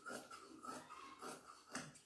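Scissors snip through cloth.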